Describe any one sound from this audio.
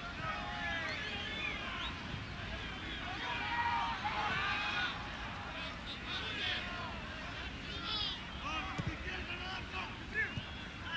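A large crowd murmurs and whistles in an open stadium.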